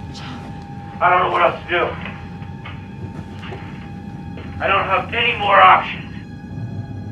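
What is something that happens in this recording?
A young woman speaks anxiously into a radio, close by.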